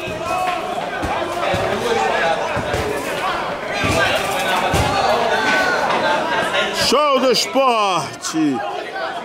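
A football thuds as it is kicked.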